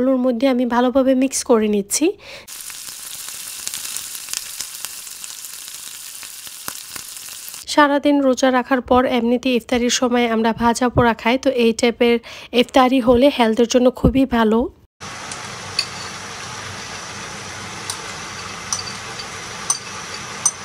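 Vegetables sizzle in a hot pot.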